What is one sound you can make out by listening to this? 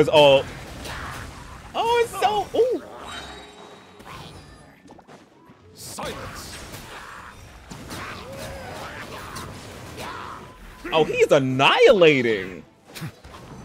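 A young man speaks and exclaims excitedly into a close microphone.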